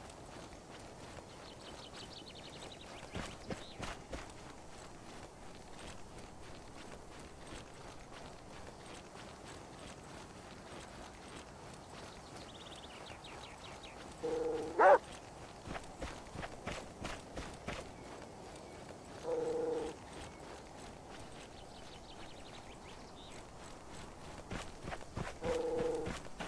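Footsteps rustle through tall grass at a steady run.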